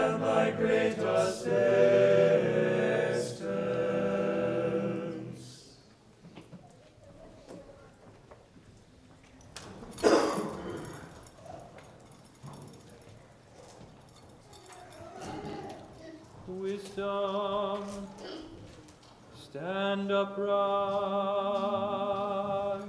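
Men chant in unison in a large echoing hall.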